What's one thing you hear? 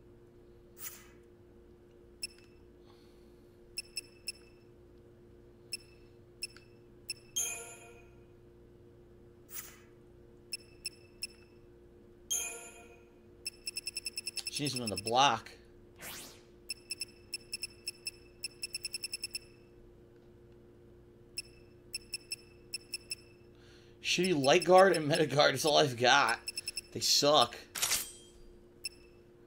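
Short electronic menu beeps tick, sometimes in quick runs.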